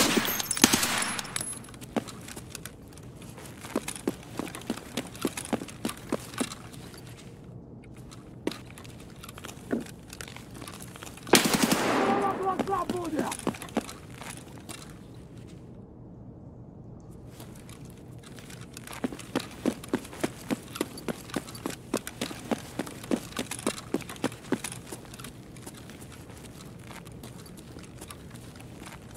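Footsteps crunch over gravel and debris.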